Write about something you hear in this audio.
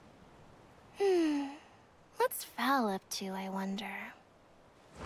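A young woman speaks wistfully.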